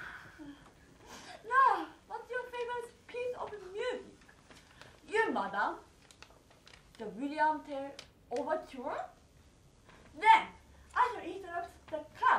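A young woman speaks dramatically, pausing between lines.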